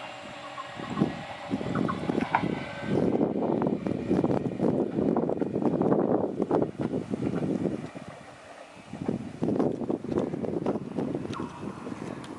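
A train rumbles as it approaches.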